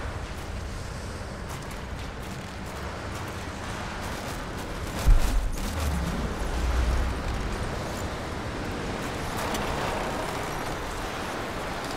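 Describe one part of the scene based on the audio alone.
Footsteps crunch on loose rubble.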